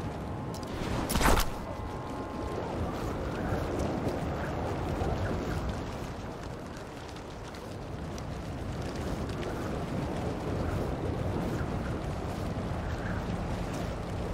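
Wind rushes past steadily during a fast swing through the air.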